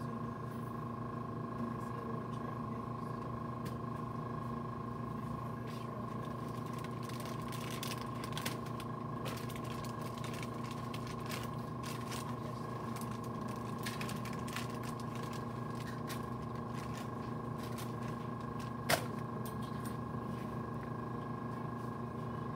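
A shopping cart rattles as it is pushed.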